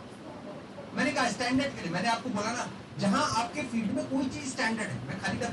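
A man speaks with animation to an audience in a room, heard through a microphone.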